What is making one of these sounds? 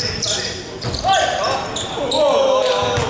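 Young men shout and call to each other across an echoing hall.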